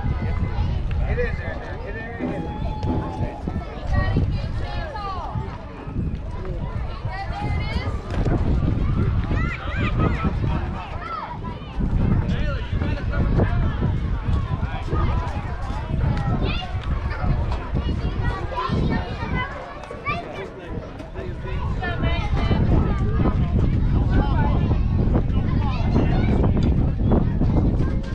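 Young girls shout and cheer outdoors, some close and some farther off.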